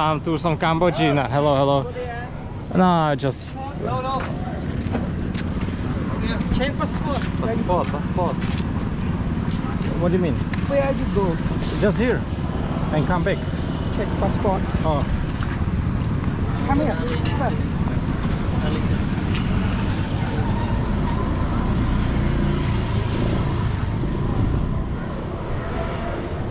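A busy street murmurs outdoors.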